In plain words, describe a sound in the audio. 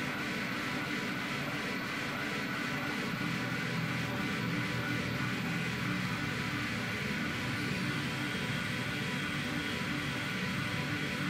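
Loud electronic dance music plays steadily through speakers.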